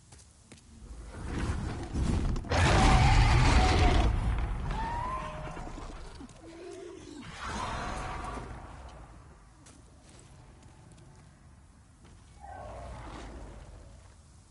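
A dragon roars loudly.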